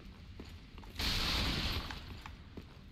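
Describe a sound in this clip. A heavy body lands with a brief loud rushing crash.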